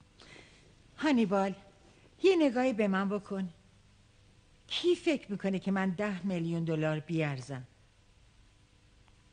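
An elderly woman speaks in a wailing, tearful voice.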